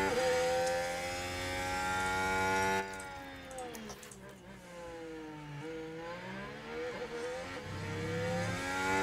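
A racing car engine whines at high revs, drops sharply in pitch as the car slows, then rises again as it speeds up.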